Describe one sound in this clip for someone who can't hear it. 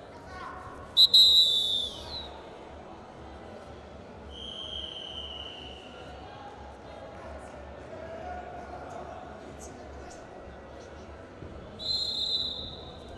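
A referee blows a whistle in sharp blasts.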